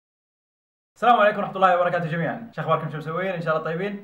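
A young man speaks calmly to the listener, close by.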